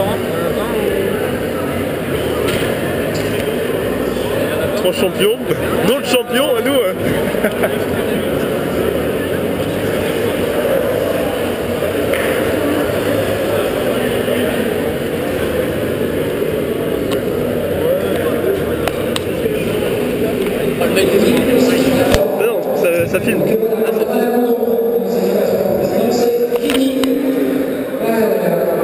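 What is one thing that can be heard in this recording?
A crowd of people chatters loudly in a large echoing hall.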